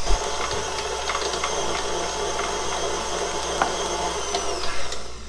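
A mixer's beater slaps and clicks through thick batter.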